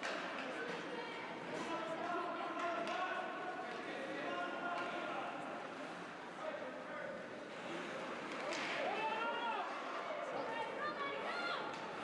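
Men shout and talk, echoing in a large rink.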